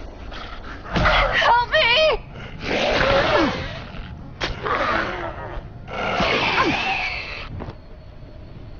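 A creature snarls and screams loudly up close.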